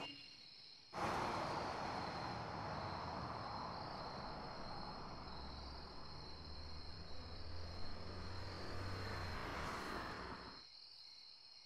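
A car engine runs at a low idle.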